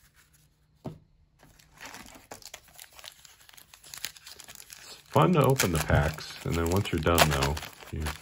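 A foil card wrapper crinkles as it is torn open.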